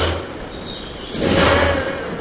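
A magic spell bursts with a bright whoosh.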